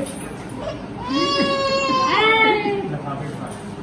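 A baby squeals and babbles.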